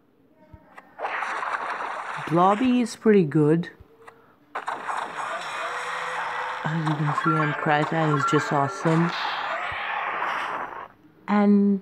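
A fantasy battle game plays whooshing, rumbling attack effects.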